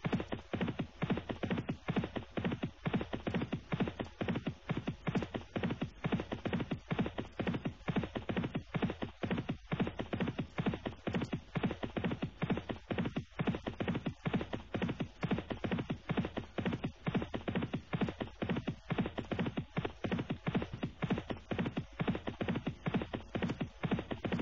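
Horses' hooves drum as they gallop on turf.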